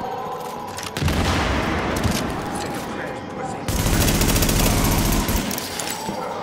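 A rifle fires bursts of gunshots.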